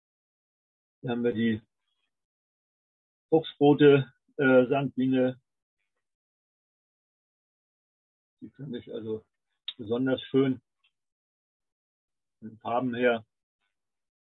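An elderly man speaks calmly through an online call, in short phrases with pauses.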